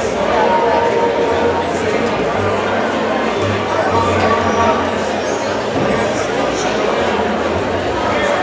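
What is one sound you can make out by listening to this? A crowd of diners chatters in the background.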